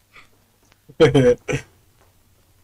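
A boy calls out briefly.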